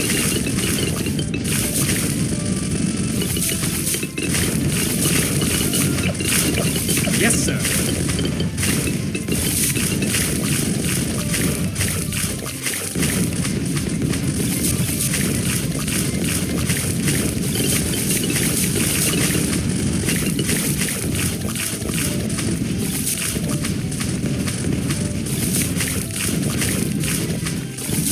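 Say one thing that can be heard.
Balloons pop rapidly in a video game.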